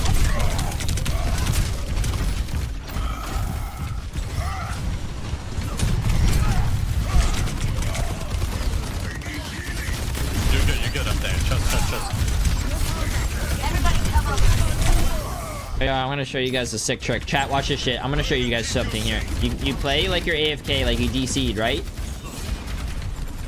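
Game weapons fire and explosions boom rapidly.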